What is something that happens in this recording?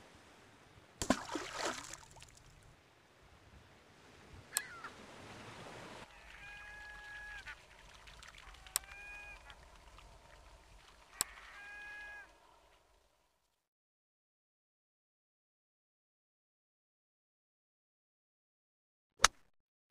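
A golf club strikes a ball with a sharp whack.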